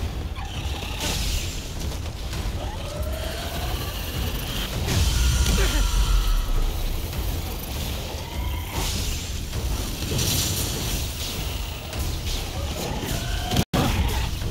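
Magic energy blasts whoosh and crackle in bursts.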